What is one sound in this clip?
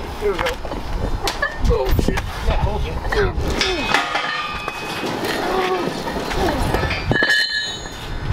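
A man strains and grunts loudly.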